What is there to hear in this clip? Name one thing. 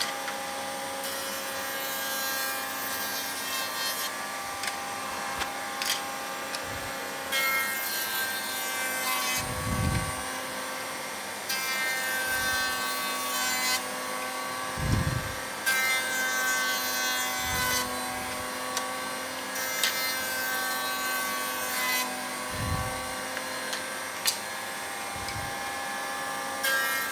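A router bit cuts into wood with a harsh, rasping buzz, again and again.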